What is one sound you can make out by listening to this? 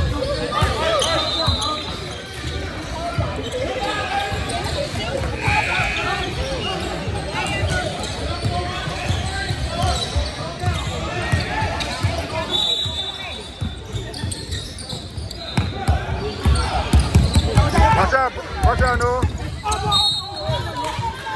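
Sneakers squeak sharply on a court.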